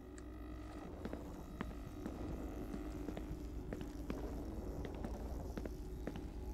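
Footsteps walk slowly on a hard floor.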